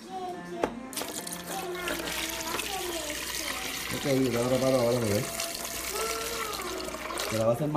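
Liquid pours steadily over ice with a hissing splash.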